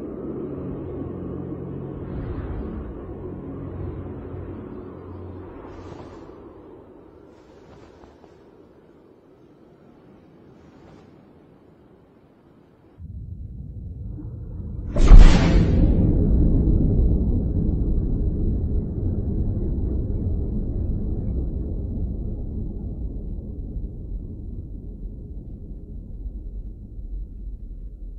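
Heavy waves crash and roar against a ship's hull.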